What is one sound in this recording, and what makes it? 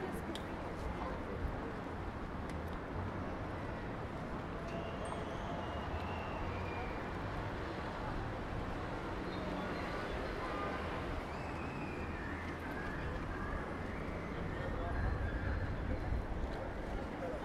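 A busy outdoor street hums steadily.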